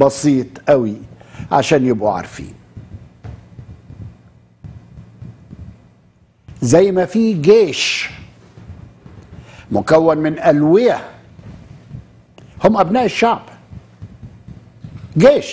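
An elderly man speaks with animation into a close microphone, in bursts with pauses.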